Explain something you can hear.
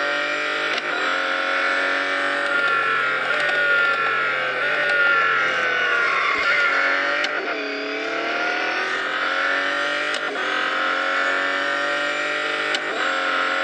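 A race car engine roars steadily at high speed, its pitch dipping and climbing as it shifts and brakes.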